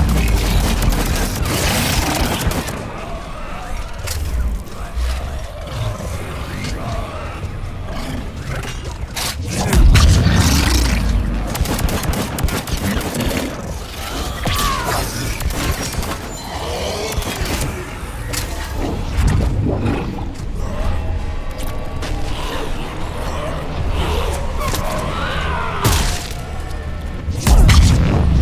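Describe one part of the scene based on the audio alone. Energy blasts whoosh and boom.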